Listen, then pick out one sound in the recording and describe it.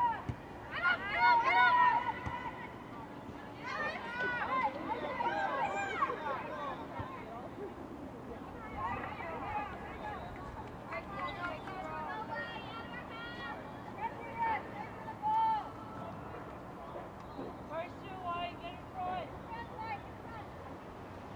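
Young women shout and call out across an open field, heard from a distance.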